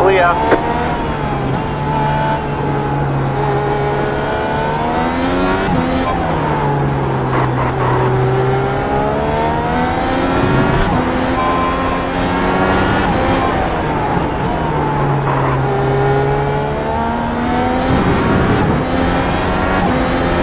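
A race car engine revs high and drops as the gears shift.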